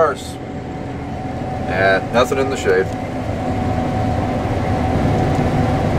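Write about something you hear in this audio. A large machine's engine hums and rumbles steadily from inside a cab.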